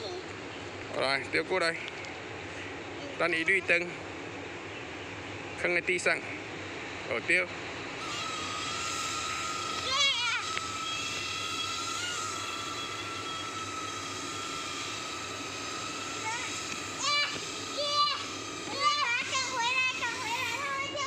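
A young girl laughs and squeals excitedly close by.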